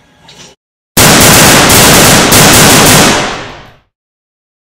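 A toy gun blasts out a loud harsh noise.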